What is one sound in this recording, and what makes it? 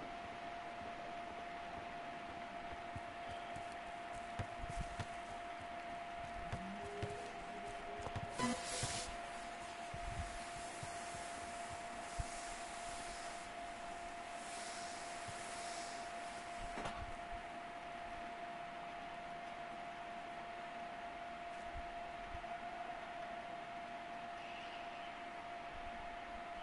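Footsteps patter on grass.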